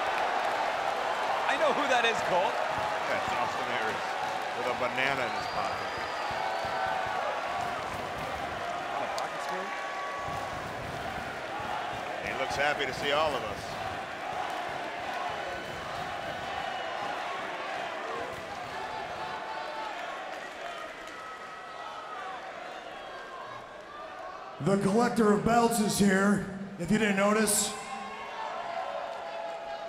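A large crowd cheers in a big echoing hall.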